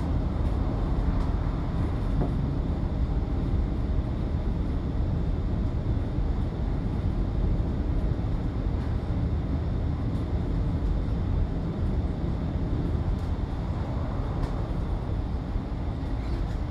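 Tyres roll on the road with a steady hum.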